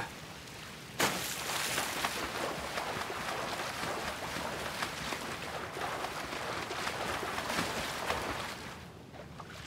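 Water sloshes and swirls as someone swims.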